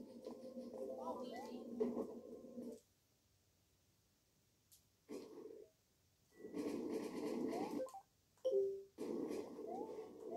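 Short chiming video game sound effects ring out.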